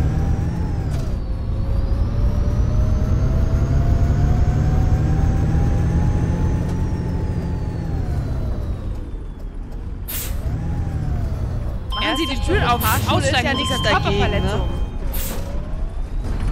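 A bus engine hums and whines, rising and falling as the bus drives along.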